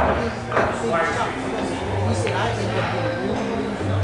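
Pool balls click together sharply.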